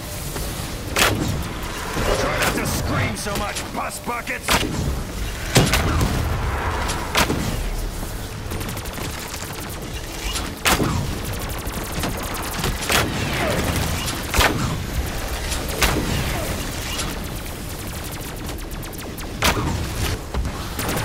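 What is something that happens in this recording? A fiery magic staff blasts shots with sharp bangs.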